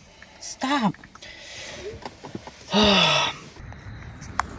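A young man speaks in a strained voice close by.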